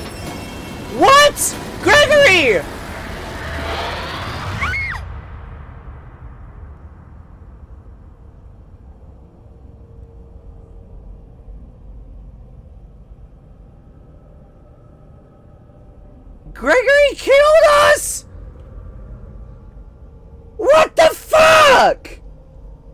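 A young woman screams loudly and shrilly into a close microphone.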